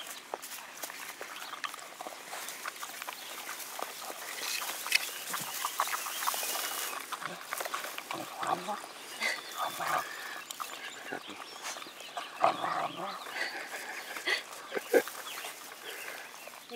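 Wolf pups lap and slurp from a cup up close.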